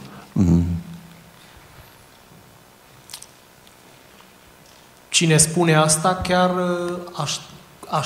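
An older man speaks calmly and slowly into a microphone, with long pauses.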